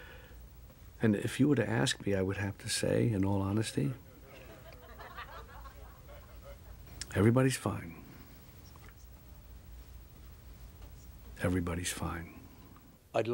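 An elderly man speaks calmly and warmly close by.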